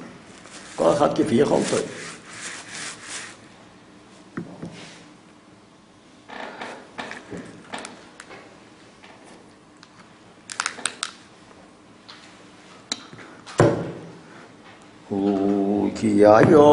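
An elderly man speaks slowly and calmly close by.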